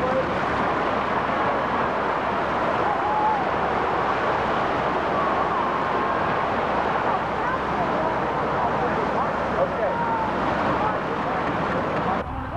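Water splashes and sprays against a boat's hull.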